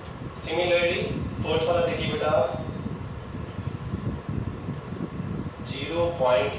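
A man speaks calmly and clearly into a close microphone, explaining.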